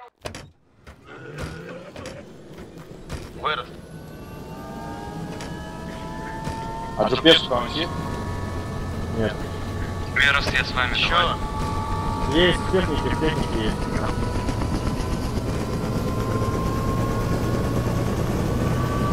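A helicopter engine starts up, its turbine whine slowly rising and growing louder.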